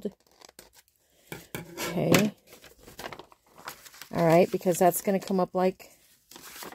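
Paper rustles and crinkles as it is folded by hand.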